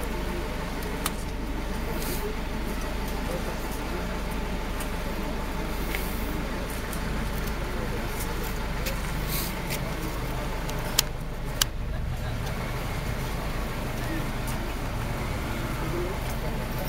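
A crowd of men and women murmur and talk outdoors nearby.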